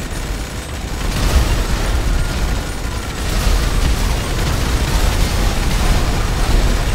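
Fires crackle and roar in an echoing tunnel.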